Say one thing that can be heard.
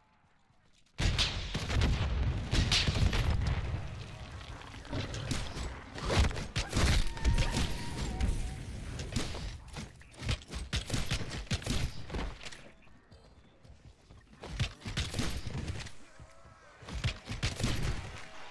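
Rifle gunfire rattles in rapid bursts.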